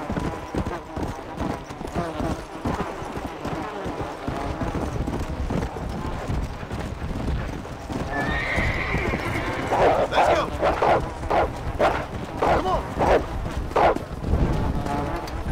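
Horse hooves pound steadily on open ground at a gallop.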